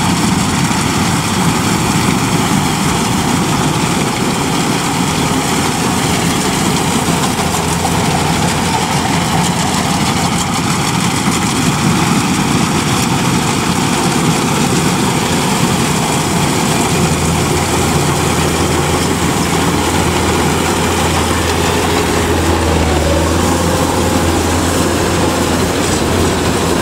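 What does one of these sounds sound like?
A combine harvester's engine drones steadily and loudly close by.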